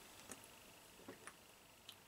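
A man gulps from a bottle.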